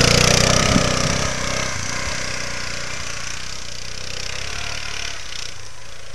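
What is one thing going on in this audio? An all-terrain vehicle engine drones close by and fades as it drives away.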